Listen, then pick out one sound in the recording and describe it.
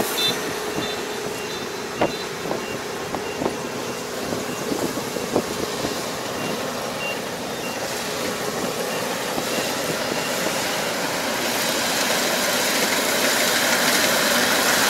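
A harvesting machine's engine drones steadily in the distance, growing slightly louder.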